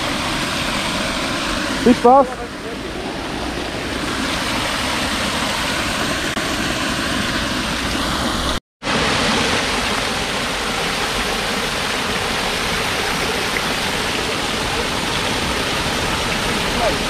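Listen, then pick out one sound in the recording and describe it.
A fountain splashes steadily into a pool of water.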